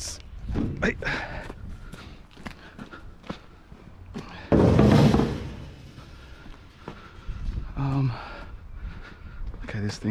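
Footsteps walk over grass and pavement outdoors.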